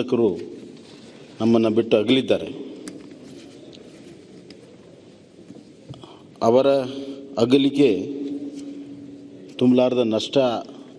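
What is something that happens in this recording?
A man speaks slowly through a microphone, with pauses, in an echoing hall.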